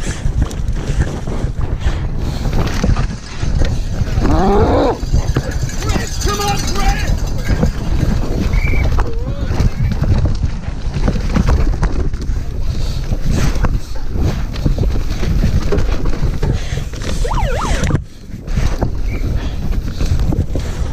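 Bicycle tyres rumble and rattle over rough dirt.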